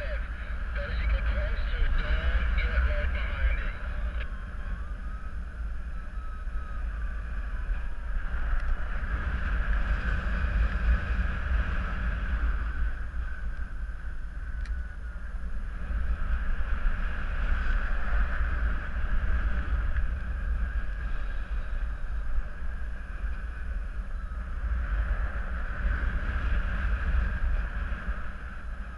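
Wind rushes and buffets steadily against the microphone, high up outdoors.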